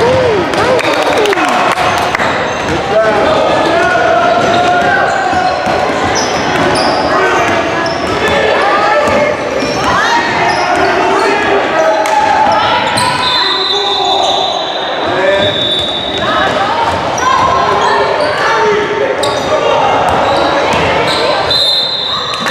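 Young players shout and call out across an echoing gym.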